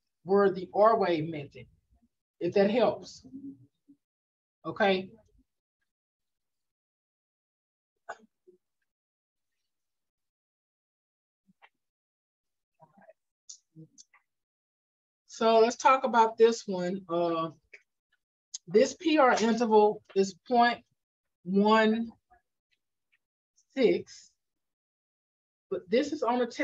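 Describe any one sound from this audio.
A woman speaks calmly through an online call, pausing between phrases.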